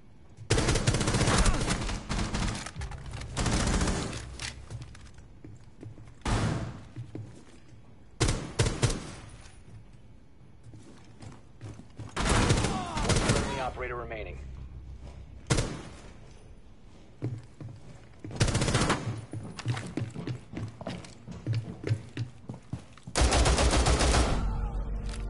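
Rapid gunshots crack out in loud bursts.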